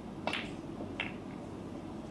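A cue sharply clicks against a snooker ball.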